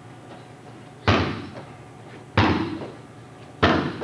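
A kick thumps hard into a heavy punching bag.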